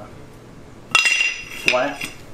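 A metal sprocket clanks down onto a concrete floor.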